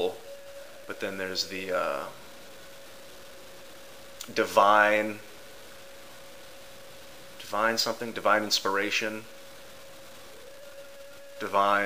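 A young man speaks calmly and thoughtfully in short bursts, close by.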